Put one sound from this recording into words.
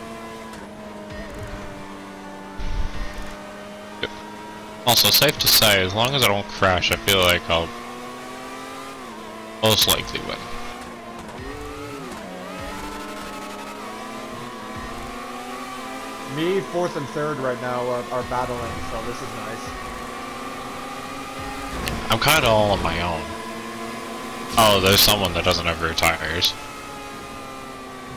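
A racing car engine whines steadily, its pitch rising and falling as it speeds up and slows.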